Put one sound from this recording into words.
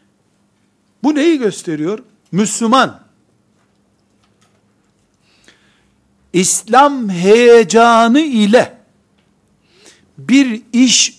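An elderly man speaks with animation into a close microphone, pausing between phrases.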